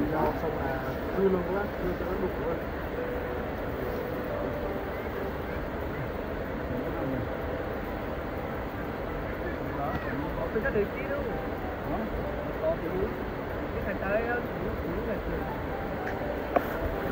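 Wind blows across the microphone.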